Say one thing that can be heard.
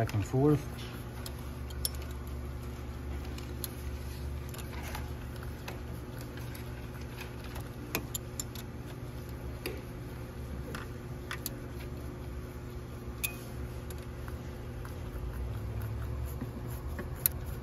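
A gloved hand taps and clicks against metal engine parts.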